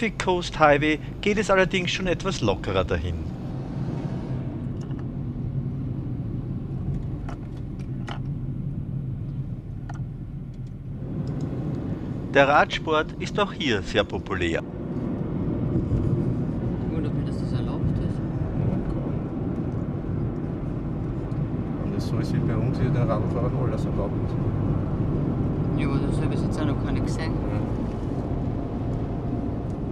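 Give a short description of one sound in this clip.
The low rumble of a car's engine and tyres on the road goes on steadily.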